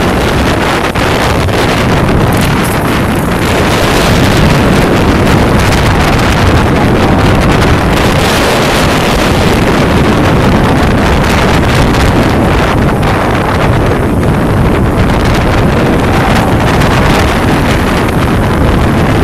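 Wind rushes loudly over the microphone from a moving motorbike.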